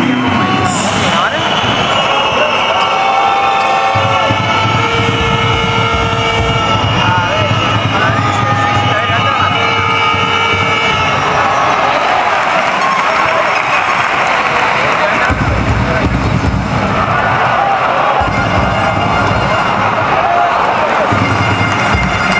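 A large crowd cheers and chants in a large indoor arena.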